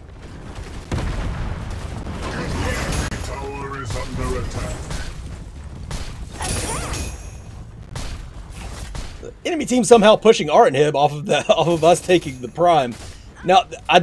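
Magic blasts crackle and whoosh in a fight.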